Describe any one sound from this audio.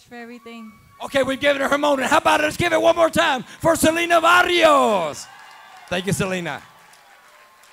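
A man announces loudly and dramatically through a microphone over loudspeakers in a large echoing hall.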